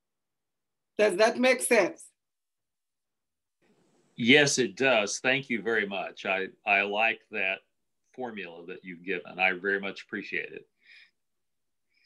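An elderly man speaks calmly over an online call.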